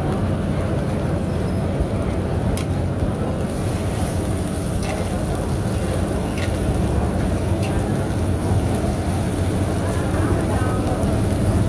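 An oyster omelette sizzles in oil on a hot iron pan.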